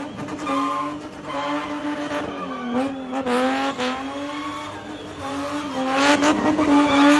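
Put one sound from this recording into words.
Tyres screech and squeal on asphalt.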